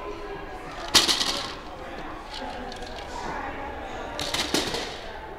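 A plastic toy ball thumps on a padded floor.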